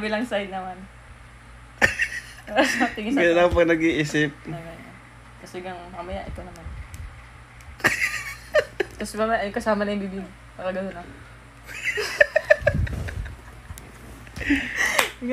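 A young woman talks playfully close by.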